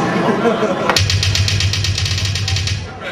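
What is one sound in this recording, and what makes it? A drummer plays a fast, rapid drum roll.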